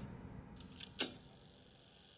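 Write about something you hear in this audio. A monitor clicks as it switches on.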